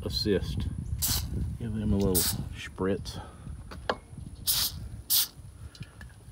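An aerosol can sprays in short, hissing bursts.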